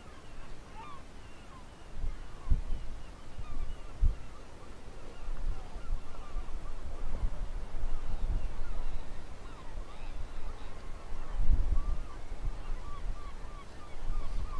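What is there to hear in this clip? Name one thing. Wind gusts outdoors, rumbling and buffeting in bursts.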